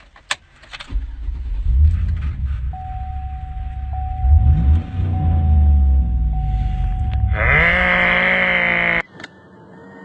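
A car engine idles and revs up.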